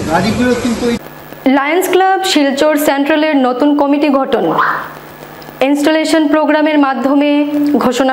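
A young woman reads out the news clearly into a microphone.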